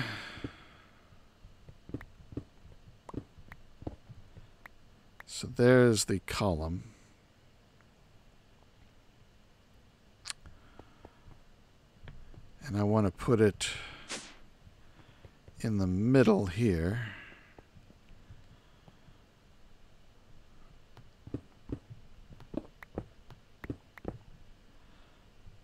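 Stone blocks break with short, dry clicks.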